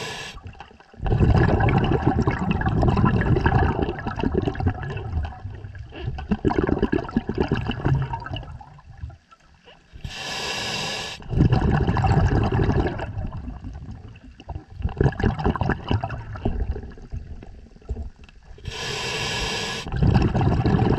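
A diver's regulator hisses with each breath underwater.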